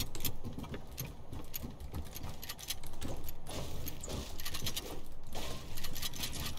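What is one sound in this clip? Footsteps thump on wooden planks.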